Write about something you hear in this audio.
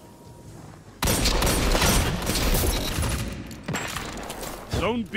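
A rifle fires a quick burst of loud shots.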